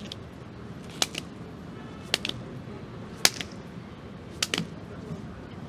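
Hands slap against pavement.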